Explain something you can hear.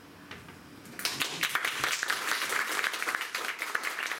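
A small group of people applauds.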